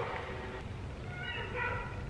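Paper pages rustle as a booklet is flipped.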